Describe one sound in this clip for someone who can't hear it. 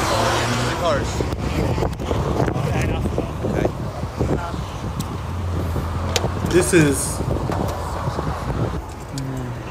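Men talk calmly outdoors.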